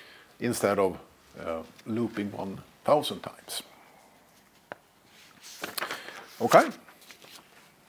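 A middle-aged man speaks in a room with some echo, pausing between phrases.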